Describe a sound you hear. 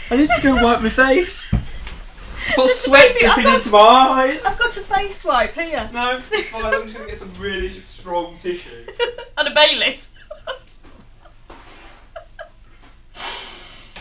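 A woman laughs loudly close to a microphone.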